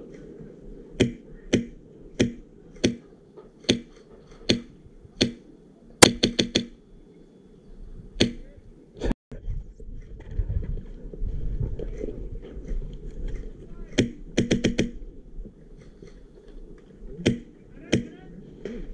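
A paintball marker fires sharp shots in single pops and quick bursts.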